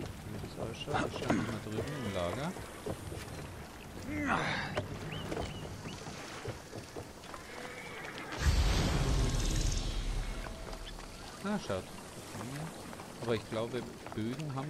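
Footsteps thud on wooden planks and stone.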